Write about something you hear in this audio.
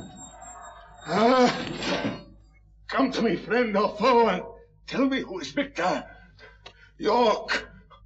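A man speaks hoarsely and breathlessly, close by.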